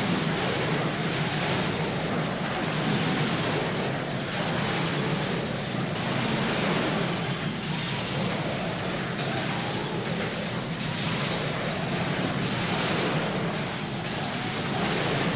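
Spell effects crackle and clash.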